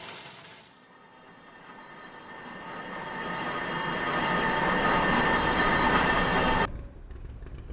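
A small car engine hums, growing louder as it draws closer, then stops.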